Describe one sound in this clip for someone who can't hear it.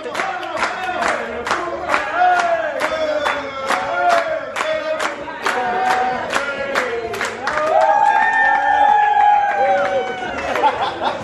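A group claps in rhythm nearby.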